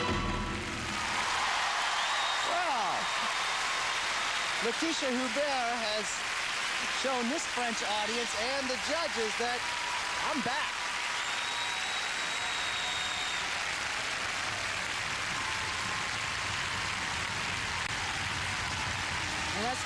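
A large crowd applauds and cheers loudly in a big echoing arena.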